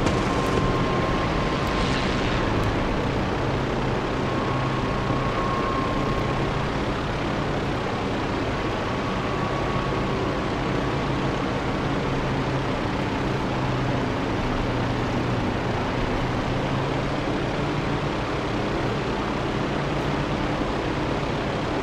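Wind rushes loudly past the cockpit.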